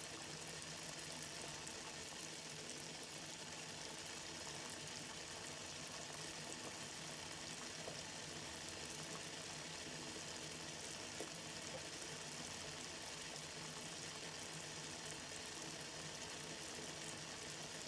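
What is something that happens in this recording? Water boils hard in a pot, bubbling and churning.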